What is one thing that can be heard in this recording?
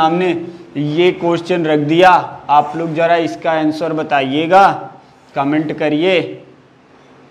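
A man speaks steadily, as if explaining, close by.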